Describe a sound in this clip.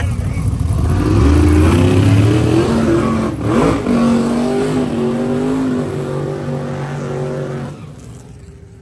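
A car engine rumbles and revs nearby.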